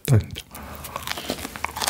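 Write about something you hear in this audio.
A young man bites into a soft, crumbly pastry.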